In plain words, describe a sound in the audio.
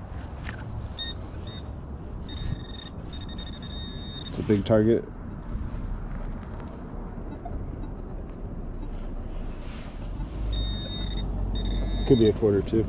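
A metal detector beeps in short high tones.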